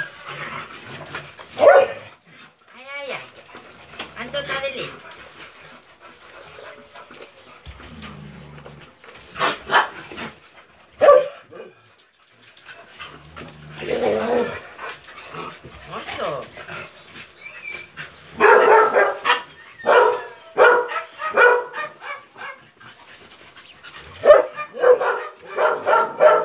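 Several dogs growl and snarl close by as they play-fight.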